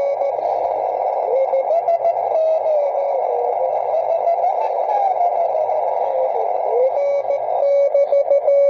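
A radio receiver whistles and warbles as it is tuned.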